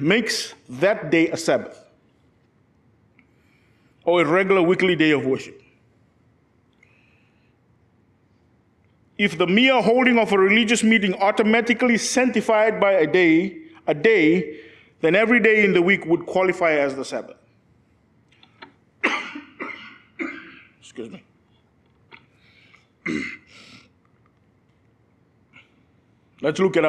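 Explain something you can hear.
A man preaches with feeling through a microphone, his voice echoing in a large room, with long pauses.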